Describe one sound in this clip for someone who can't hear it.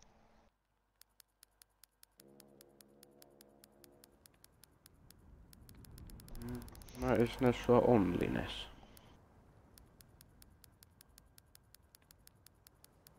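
Soft menu ticks click in quick, even succession.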